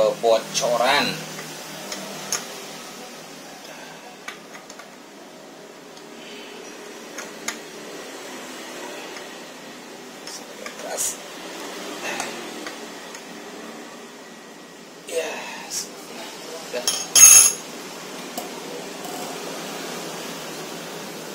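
Metal parts of a small machine click and clink as hands handle them.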